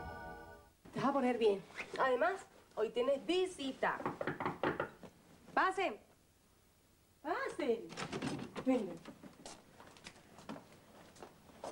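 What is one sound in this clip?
A woman speaks firmly close by.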